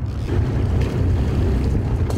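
A fish thrashes and splashes at the water's surface.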